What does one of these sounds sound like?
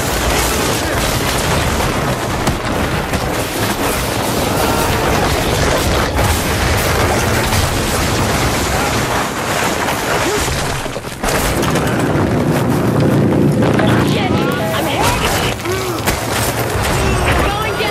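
Chunks of debris crash and clatter down.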